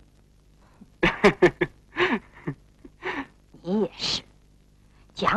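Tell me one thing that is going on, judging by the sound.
A middle-aged woman speaks with amusement.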